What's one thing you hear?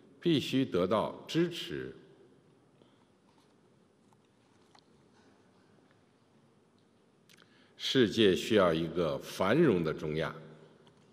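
A middle-aged man speaks formally and steadily into a microphone, pausing between phrases.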